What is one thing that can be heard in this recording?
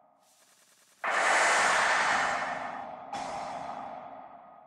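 A bright, noisy game effect swells up suddenly as a card is played, then fades.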